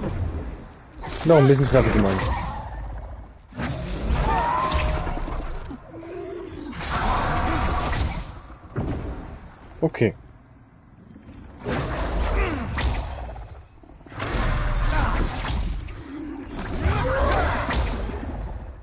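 A dragon roars loudly.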